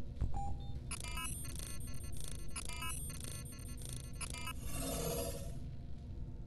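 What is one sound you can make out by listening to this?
An electronic scanner beeps and chirps rapidly.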